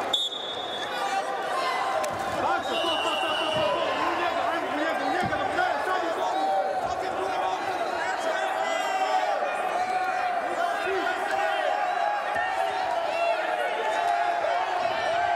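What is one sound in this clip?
Wrestlers' bodies thud against each other as they grapple.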